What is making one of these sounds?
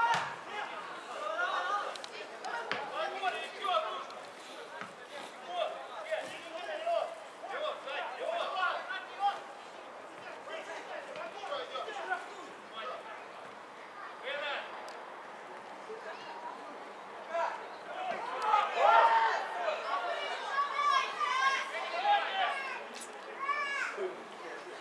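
Men shout and call out to each other across an open outdoor field.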